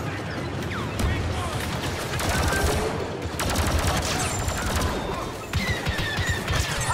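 Explosions boom and crackle nearby.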